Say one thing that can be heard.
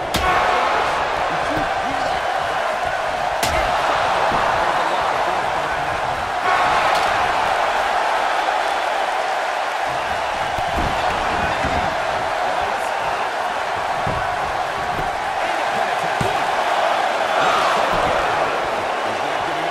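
A large crowd roars and cheers steadily throughout.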